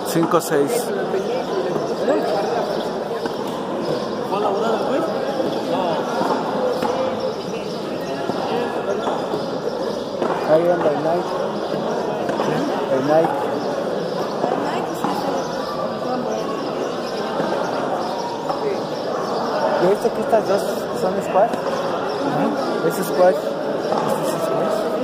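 Men call out to each other in an echoing court.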